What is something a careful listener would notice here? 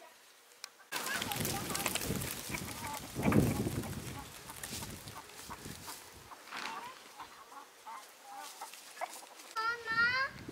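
Chickens cluck softly nearby.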